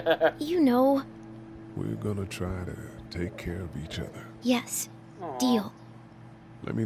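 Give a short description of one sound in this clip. A young girl speaks softly and calmly.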